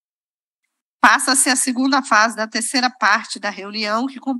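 A woman speaks clearly into a microphone in a calm, formal tone.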